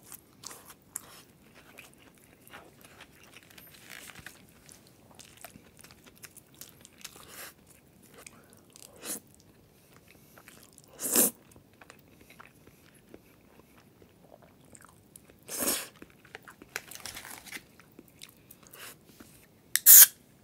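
A young man chews food with wet smacking sounds.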